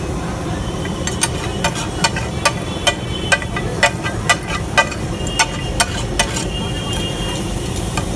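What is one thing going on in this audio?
A metal spatula scrapes and taps rapidly on a griddle.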